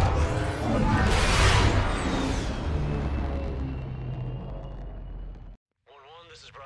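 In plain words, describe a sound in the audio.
A spacecraft roars past and fades away.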